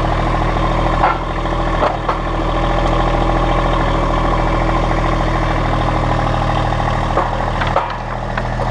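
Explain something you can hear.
Metal forks clank against a wooden pallet.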